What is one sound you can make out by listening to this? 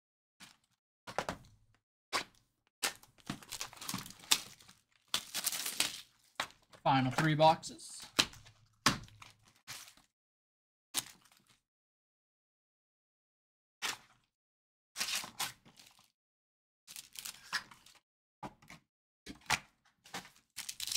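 Foil card packs crinkle and rustle in hands.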